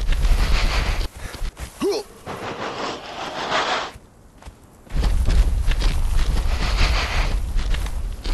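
Footsteps tread on grass and wooden boards.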